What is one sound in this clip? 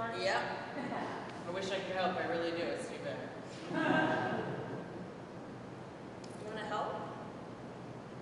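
A young woman speaks with feeling in a large echoing hall.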